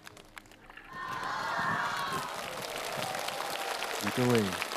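A crowd cheers.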